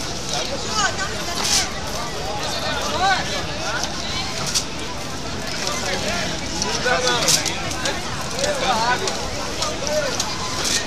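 Another man answers loudly close by.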